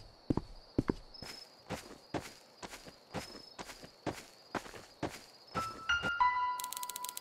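Footsteps crunch steadily through snow.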